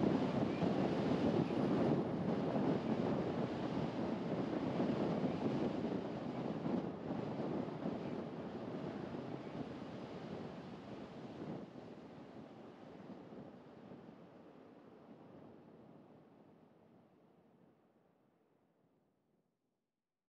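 Tyres roll steadily over smooth asphalt, with a low rumble that slowly fades away.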